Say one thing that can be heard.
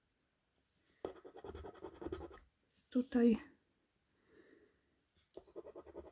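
A fingernail scratches and rubs against a paper card.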